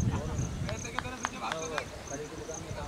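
A cricket bat knocks a ball in the distance.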